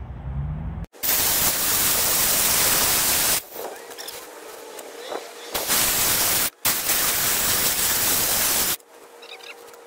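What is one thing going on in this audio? A circular saw whines loudly as it cuts through wood.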